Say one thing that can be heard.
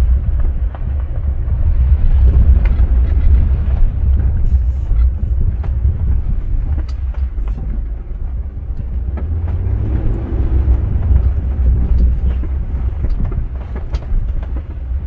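Tyres crunch and rattle over a rough dirt road.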